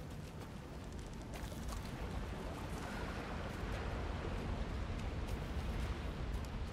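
Footsteps crunch through forest undergrowth.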